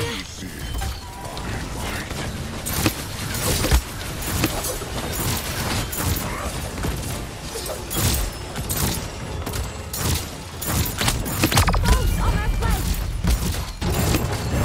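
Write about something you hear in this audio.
A crossbow fires bolts in quick, repeated bursts.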